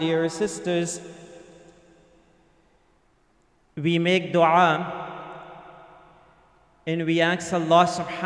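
An elderly man chants slowly through a microphone in a reverberant hall.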